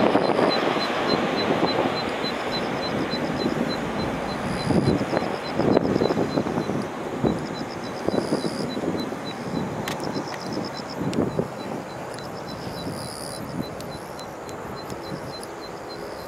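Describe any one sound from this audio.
A jet airliner roars overhead and slowly fades into the distance.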